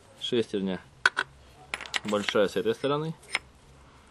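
Metal gears clink against each other as they are handled.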